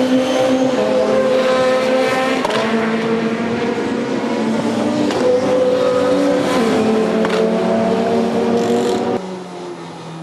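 A touring car engine revs hard at racing speed.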